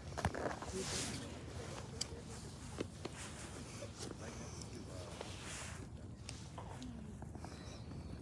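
Small objects knock softly as they are set down on dry ground.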